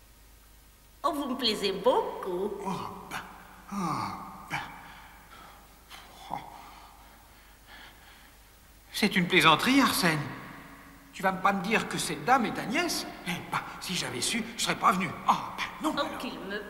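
A high, childlike voice speaks with animation, close by.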